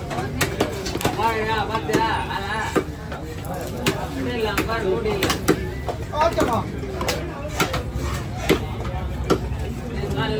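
A heavy knife chops down hard onto a wooden block, again and again.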